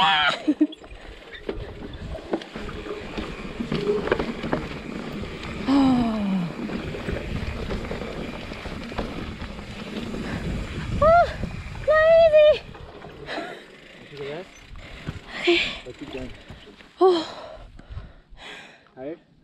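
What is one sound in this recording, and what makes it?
Bicycle tyres rumble and crunch over a bumpy dirt trail.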